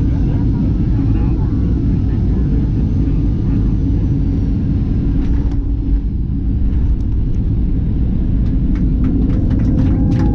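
Aircraft wheels rumble and thump over the runway.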